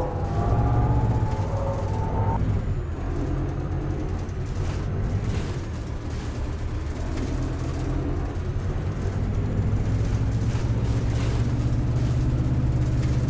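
A bus engine rumbles steadily, rising and falling as the bus drives on.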